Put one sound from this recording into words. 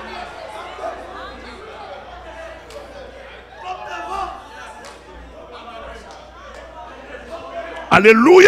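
A crowd of people talk and murmur in a large echoing hall.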